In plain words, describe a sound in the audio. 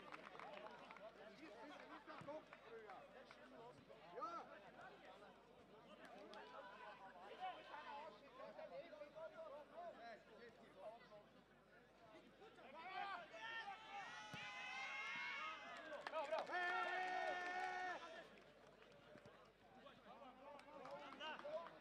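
A football is kicked on artificial turf.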